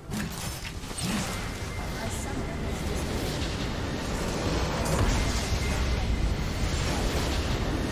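Game spell effects blast and crackle in loud bursts.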